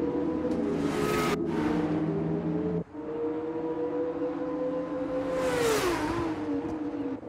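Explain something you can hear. A racing car roars past close by with a sharp whoosh.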